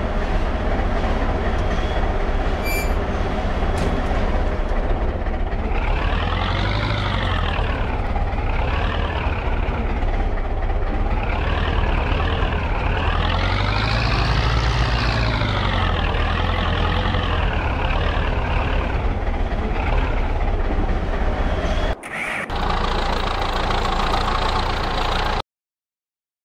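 A tractor engine rumbles, revving up and down.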